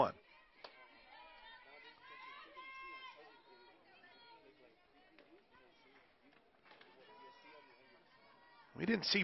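A crowd of spectators chatters outdoors nearby.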